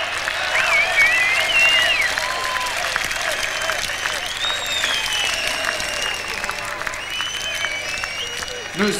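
People in a crowd whistle loudly.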